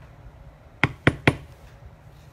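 A mallet strikes a tool three times in quick succession.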